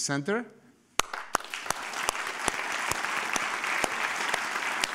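An audience applauds steadily, with loud nearby claps.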